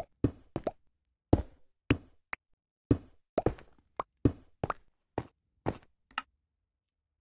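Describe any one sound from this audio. Stone blocks crack and crumble as a pickaxe mines them in a video game.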